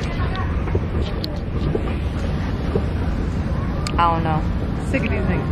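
A young woman talks casually, close to the microphone.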